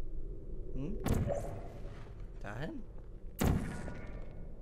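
A futuristic gun fires with a sharp electronic burst.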